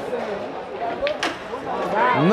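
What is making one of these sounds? Pool balls click sharply together.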